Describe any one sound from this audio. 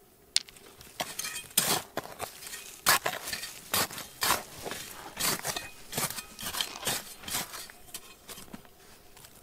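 A hand tool scrapes and digs into stony ground.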